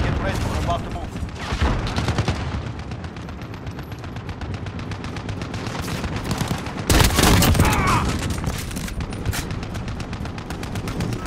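Footsteps run quickly over hard ground.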